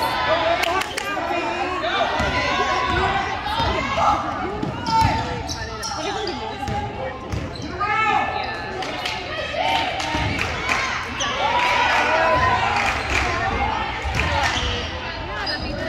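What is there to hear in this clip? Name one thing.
Young women call out and shout during play in a large echoing gym.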